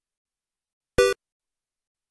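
A short electronic beep sounds.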